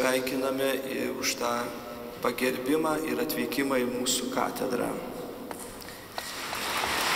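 Men sing a slow chant together in a large echoing hall.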